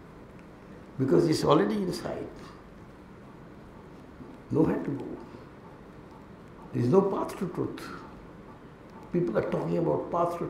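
A middle-aged man speaks into a microphone in short bursts with pauses.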